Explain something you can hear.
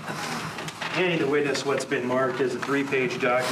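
An elderly man speaks with emotion through a microphone.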